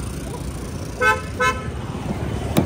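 A car chirps twice as its lock opens.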